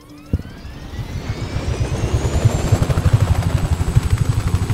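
A helicopter's rotor starts up and thumps faster and faster.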